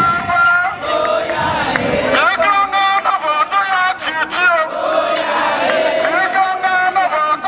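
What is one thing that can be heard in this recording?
A man shouts through a megaphone.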